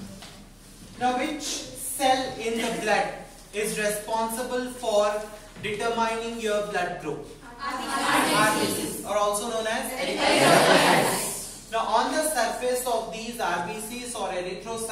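A man lectures with animation in a room with a slight echo.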